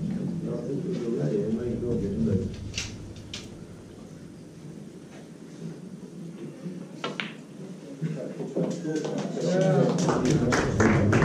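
Men murmur and chat quietly in a small crowd nearby.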